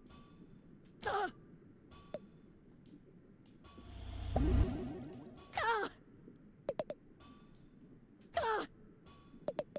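A cartoon creature squeaks in short, bouncy chirps.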